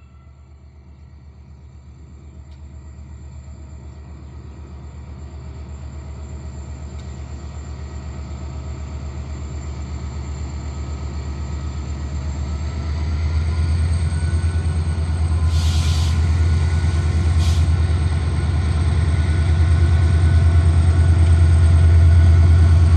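A locomotive engine rumbles deeply and grows louder as it approaches.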